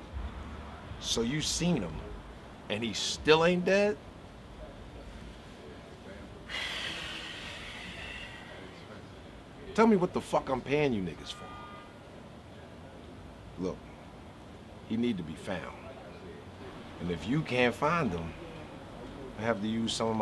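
A man talks calmly and close by, in short bursts with pauses.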